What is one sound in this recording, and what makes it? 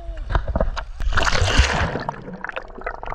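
Water splashes and bubbles loudly.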